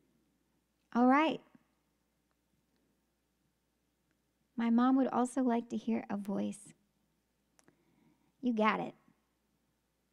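A young woman speaks with animation into a close microphone, in short bursts between silences.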